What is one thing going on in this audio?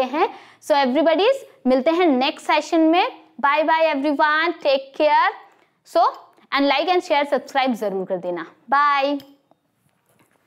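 A young woman speaks clearly and with animation into a close microphone.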